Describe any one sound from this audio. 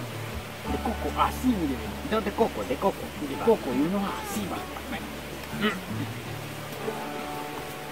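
Two young men talk with animation close by.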